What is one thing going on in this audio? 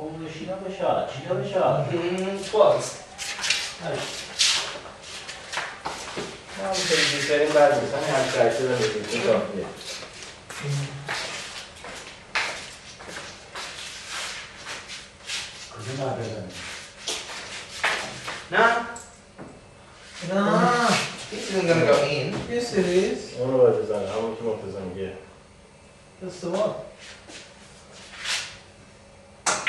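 Several men talk and joke casually nearby in a small echoing room.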